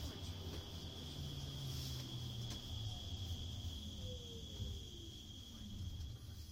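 Fingers rub and bump against a watch close by, with muffled handling noise.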